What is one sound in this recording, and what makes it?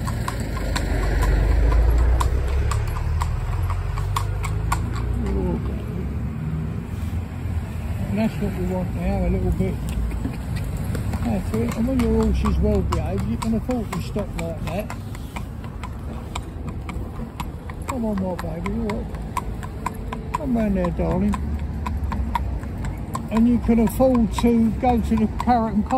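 A horse's hooves clop steadily on the road.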